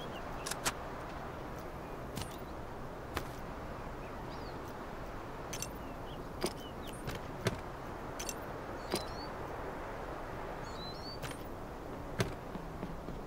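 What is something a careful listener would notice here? Short clicks and thuds sound as items are dragged and dropped.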